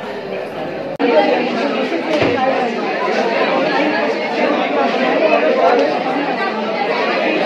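A man talks calmly with a woman close by.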